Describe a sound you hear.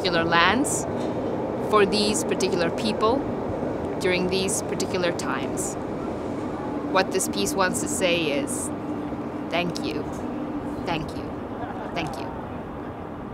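A young woman speaks calmly and warmly, close to a microphone.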